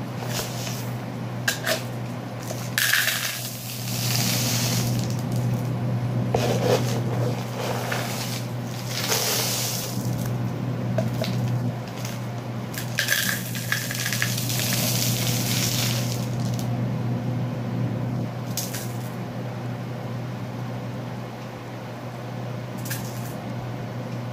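Plastic cups rustle and crinkle as they are handled.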